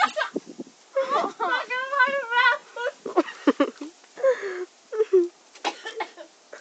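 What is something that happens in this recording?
A young woman shouts excitedly close by.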